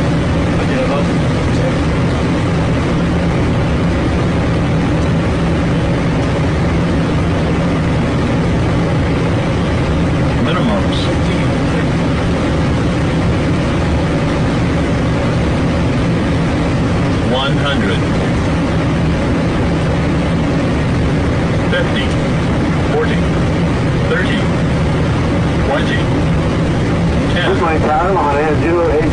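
Jet engines roar steadily inside the aircraft.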